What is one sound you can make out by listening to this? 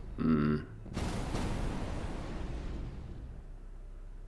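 A second loud explosion booms and roars, then fades away.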